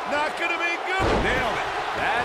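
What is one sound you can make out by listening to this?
A wrestler slams onto the mat with a heavy thud.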